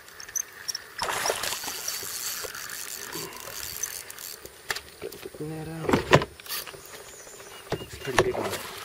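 A kayak paddle splashes into river water.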